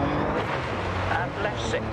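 Water splashes hard over the car.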